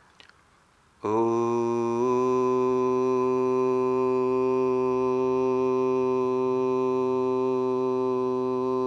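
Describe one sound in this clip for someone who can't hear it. A man chants one long, steady, deep note close by.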